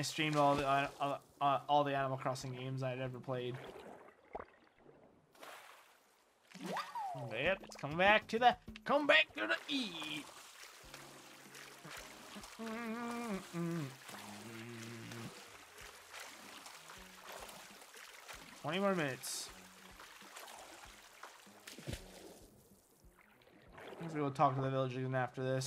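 Water splashes as a game character swims.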